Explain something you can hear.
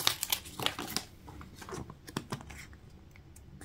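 A plastic capsule clicks and rattles in the hands.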